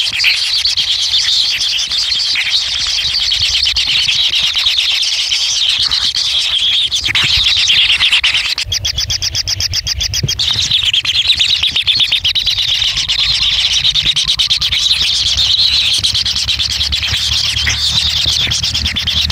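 Kingfisher nestlings beg with a rapid, buzzing chatter.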